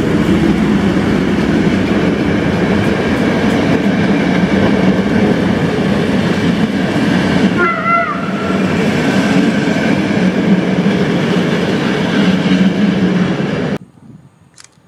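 A passenger train rumbles past close by, wheels clattering on the rails.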